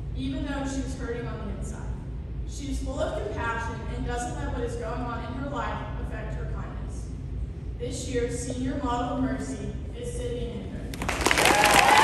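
A girl speaks into a microphone over a loudspeaker in a large echoing hall.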